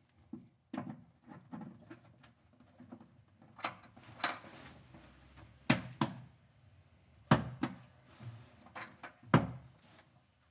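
A cable plug clicks and rattles into a socket.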